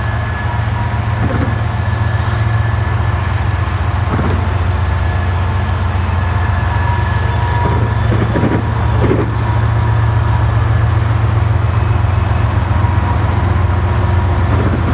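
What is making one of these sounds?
A train engine rumbles steadily close by.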